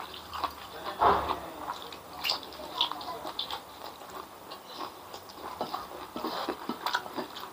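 A man chews food noisily close to a microphone.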